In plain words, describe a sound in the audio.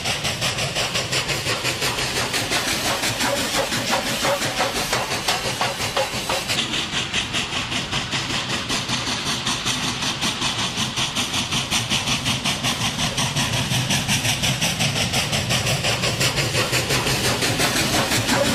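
A steam locomotive chuffs rapidly and steadily as it pulls a train.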